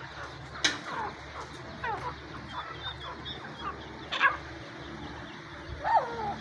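Small birds chirp and peep close by.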